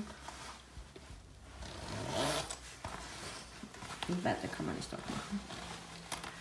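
Jacket fabric rustles as a man moves.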